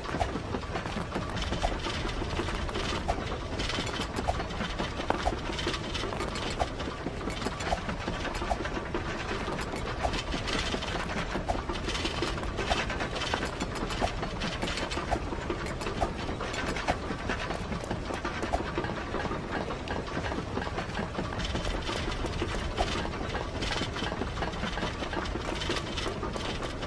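Quick footsteps patter steadily.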